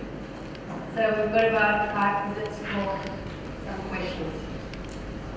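A second woman speaks calmly through a microphone.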